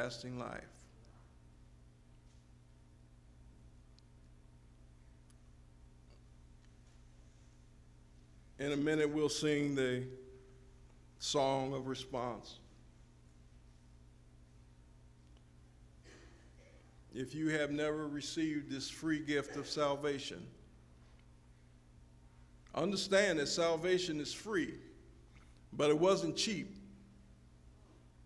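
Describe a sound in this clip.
An elderly man speaks slowly through a microphone in a large echoing hall, with long pauses.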